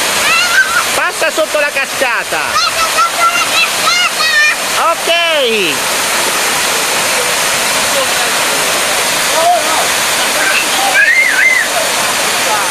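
Young girls shout and laugh close by.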